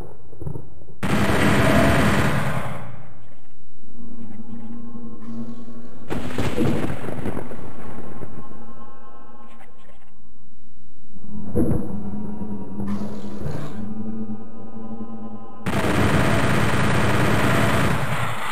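A weapon fires with a loud blast.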